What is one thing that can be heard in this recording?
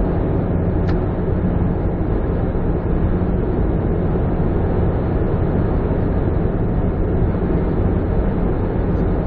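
A car's engine hums steadily, heard from inside the car.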